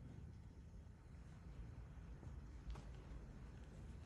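Small metal vessels clink softly on a table.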